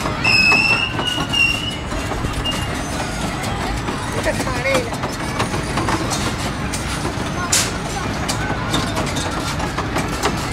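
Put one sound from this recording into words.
Children shout and squeal on a ride outdoors.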